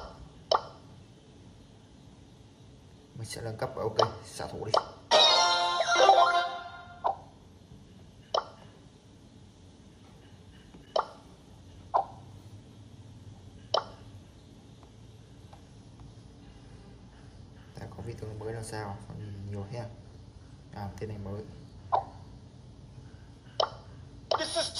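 Short electronic clicks sound from a tablet game as its buttons are tapped.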